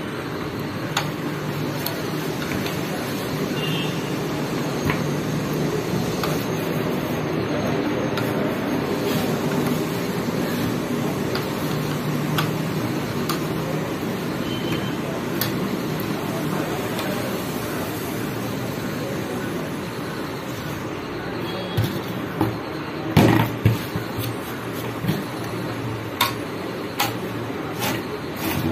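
Small plastic parts click and knock.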